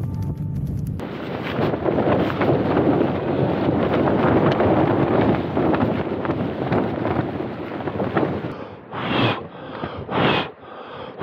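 Wind blows strongly outdoors.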